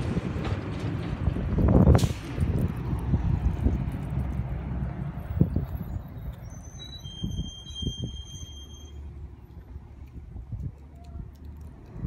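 A garbage truck's engine rumbles as it drives away down the street and slowly fades.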